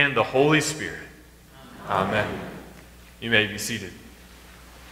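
A young man speaks calmly in an echoing room.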